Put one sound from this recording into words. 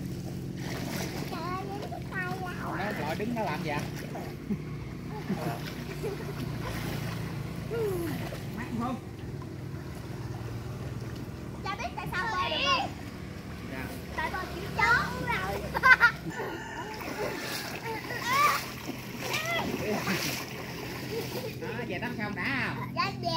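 Children shout and laugh playfully nearby, outdoors.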